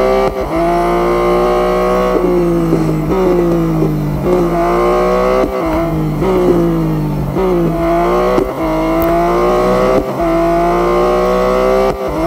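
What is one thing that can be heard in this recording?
A race car engine roars and whines, its pitch rising through the gears and dropping as it shifts.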